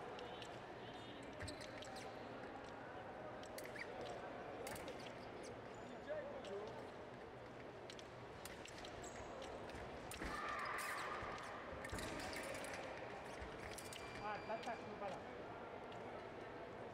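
Fencing blades clash and scrape.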